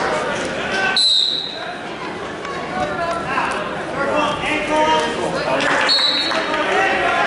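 A referee's whistle blows in short sharp blasts.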